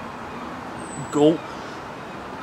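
A young man says a short word up close.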